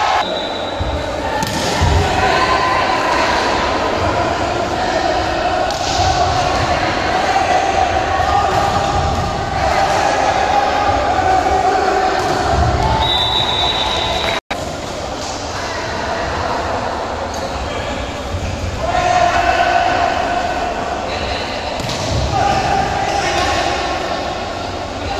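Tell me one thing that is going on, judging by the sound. A crowd of young men shouts and cheers in an echoing hall.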